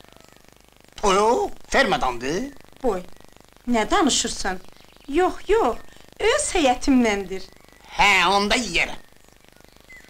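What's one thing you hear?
An older woman talks cheerfully and laughs nearby.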